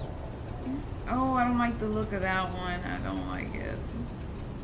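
A young woman speaks briefly and with animation into a nearby microphone.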